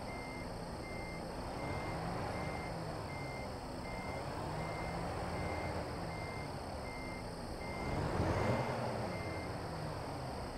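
A reversing alarm beeps in a steady rhythm.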